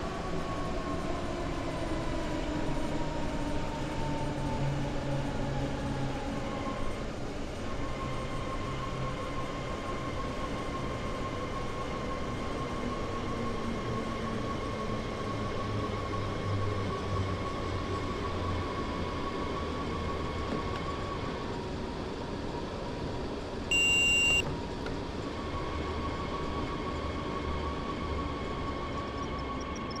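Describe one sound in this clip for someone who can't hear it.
An electric train motor hums and whines, slowly dropping in pitch as the train slows.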